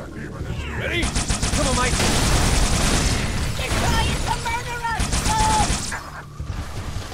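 A weapon fires rapid, crackling bursts.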